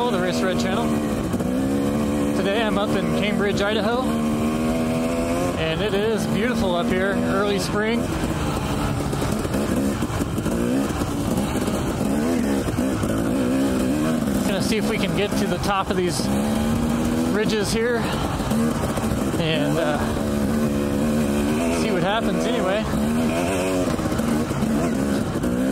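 A dirt bike engine revs up and down loudly, heard up close.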